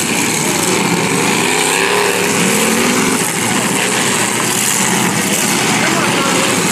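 Several car engines roar and rev loudly across an open field.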